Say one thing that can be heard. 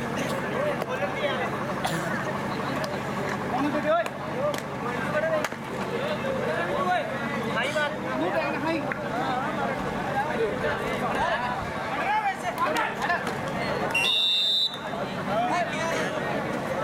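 A large outdoor crowd chatters and calls out.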